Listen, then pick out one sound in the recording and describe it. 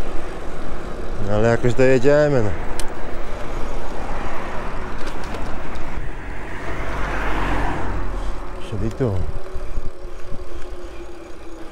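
Bicycle tyres roll on asphalt.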